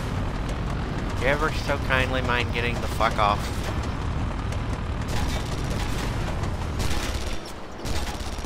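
A heavy vehicle engine rumbles deeply.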